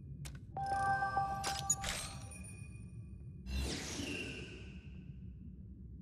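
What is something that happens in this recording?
Short electronic menu chimes ring out.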